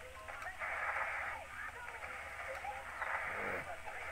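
A heavy metal dial grinds as it turns.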